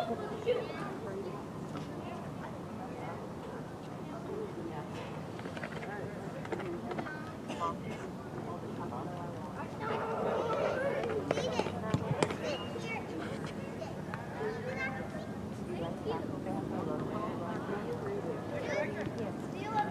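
A crowd of spectators chatters in the distance.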